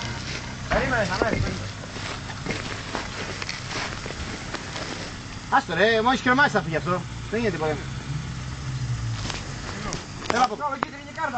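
A man calls out nearby, loud and animated.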